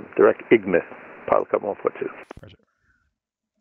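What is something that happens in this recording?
A young man speaks calmly through a headset microphone.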